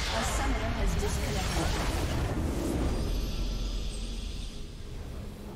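Game spell effects crackle and boom loudly, then fade away.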